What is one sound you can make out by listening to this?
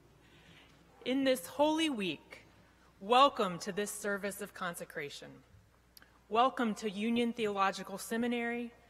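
A woman speaks calmly into a microphone over loudspeakers in a large hall.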